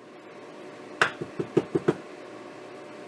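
A grinder cup knocks several times on a hard surface.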